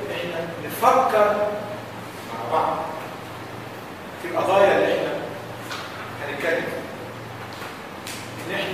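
A man speaks with animation in a room with some echo.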